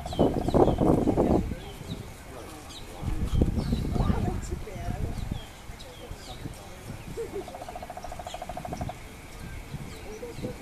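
A small bird chirps in short, repeated calls.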